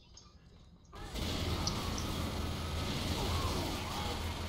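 Gunfire and explosions roar in a battle.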